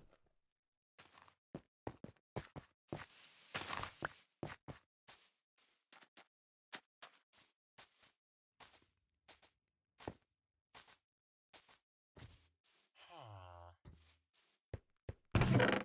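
Footsteps thud steadily across grass and dirt.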